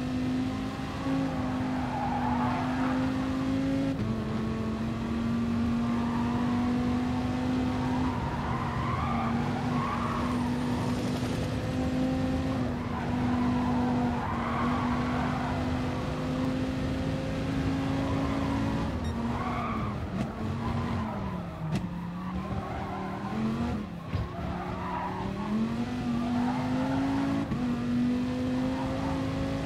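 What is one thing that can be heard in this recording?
A racing car engine roars at high revs, dipping as the car slows and then climbing again.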